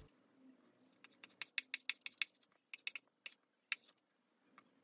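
A hair iron clicks as it clamps and opens.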